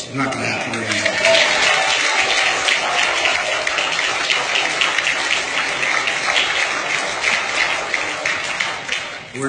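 A crowd applauds and cheers loudly in a large room.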